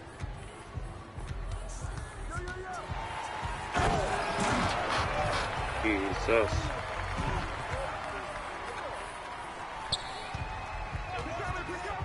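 A basketball bounces on a hardwood floor with quick thuds.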